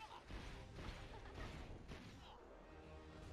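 A magical blast crackles and whooshes.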